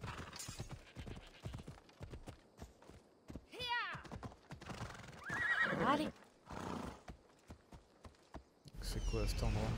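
Horse hooves clop over rocky ground.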